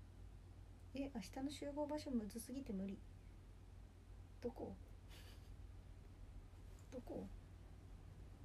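A young woman speaks softly in short bursts, close by.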